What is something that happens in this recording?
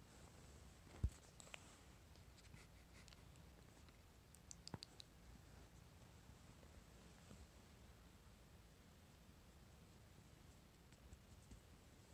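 A hand rubs and strokes a cat's fur.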